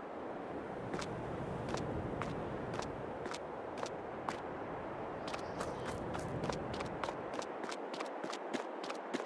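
Footsteps tread steadily on hard ground, speeding up.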